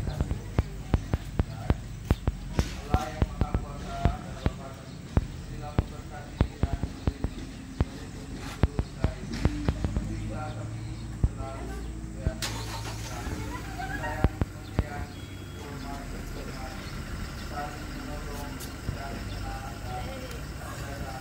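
Women talk and chat nearby outdoors.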